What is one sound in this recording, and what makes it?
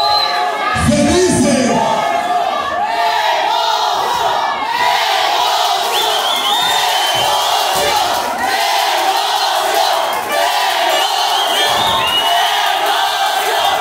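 A crowd cheers and shouts in a large, echoing hall.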